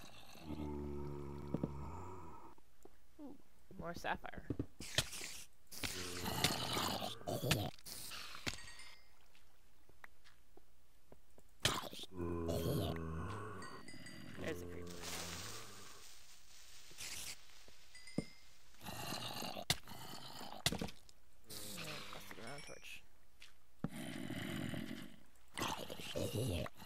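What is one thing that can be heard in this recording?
A zombie groans in low, moaning bursts.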